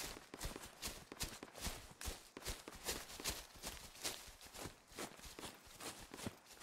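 Footsteps swish through grass at a brisk, steady pace.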